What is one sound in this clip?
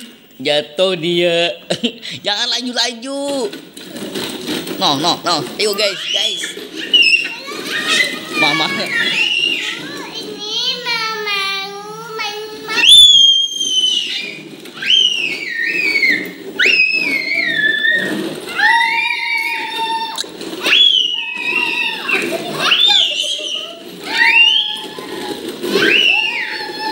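A young girl sings loudly and playfully nearby.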